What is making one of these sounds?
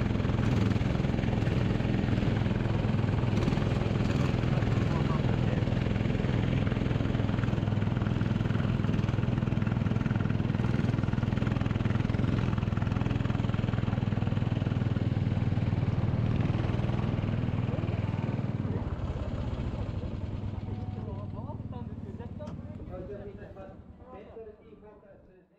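A kart engine buzzes loudly close by, then slows and dies away.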